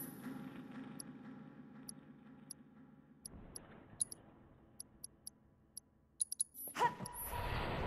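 Short electronic beeps sound from a game menu.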